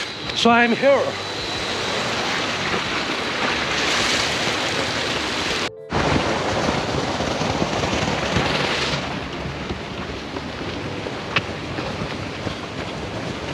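Wind rushes over the microphone outdoors.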